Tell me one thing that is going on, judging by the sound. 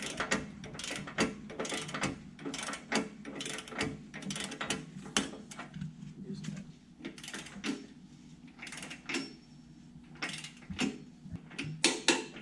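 Metal tools clank and scrape against a steel post.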